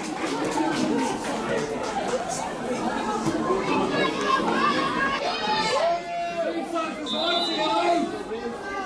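Young women shout to each other across an outdoor pitch.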